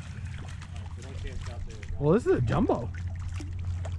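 A fish splashes in the water.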